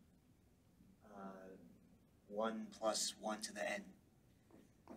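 A man speaks calmly, lecturing.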